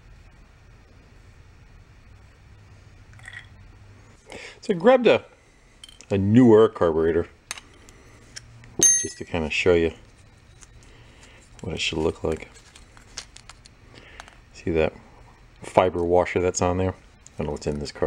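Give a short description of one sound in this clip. Small metal parts click and clink against each other.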